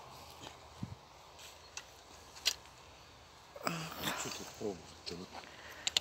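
A garden weeding tool crunches and scrapes into dry soil.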